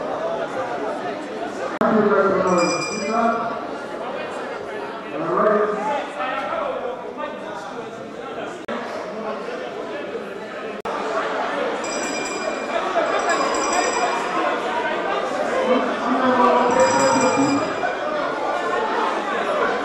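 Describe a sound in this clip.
A crowd of men and women shout and argue loudly in a large hall.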